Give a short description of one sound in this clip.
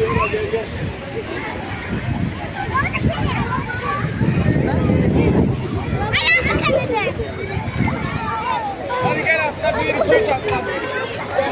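Water splashes as swimmers move in a pool.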